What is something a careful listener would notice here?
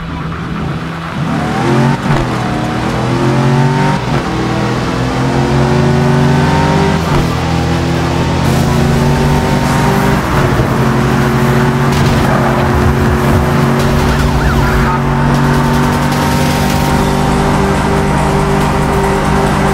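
A car engine revs hard and climbs through the gears.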